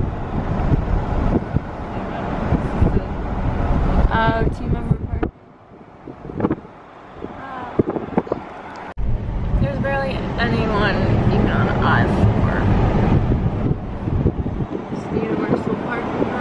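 A car drives along a road with a steady rumble of tyres and engine.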